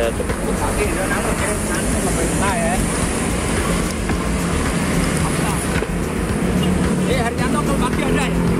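Traffic hums along a busy street nearby.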